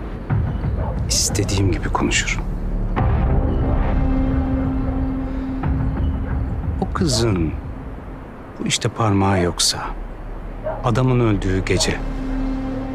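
A middle-aged man speaks in a low, tense voice, close by.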